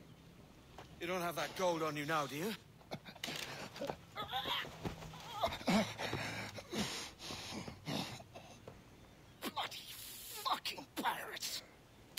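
A second man speaks coldly and mockingly close by.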